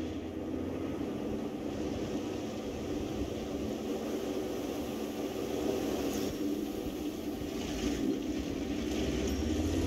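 A tank engine rumbles steadily as the tank drives.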